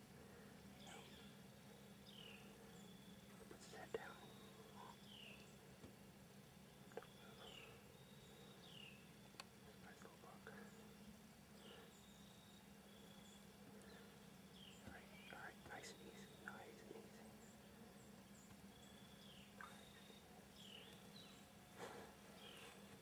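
A deer steps through dry leaves, rustling and snapping twigs.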